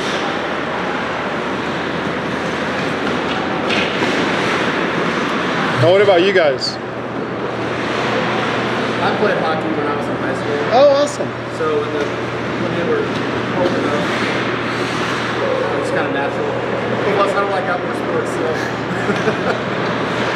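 Hockey sticks tap and clack on the ice.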